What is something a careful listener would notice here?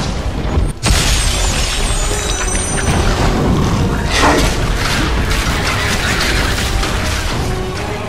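Blades clash and slash in rapid strikes.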